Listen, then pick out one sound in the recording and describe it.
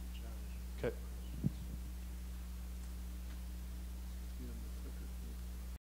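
A man speaks calmly at a distance.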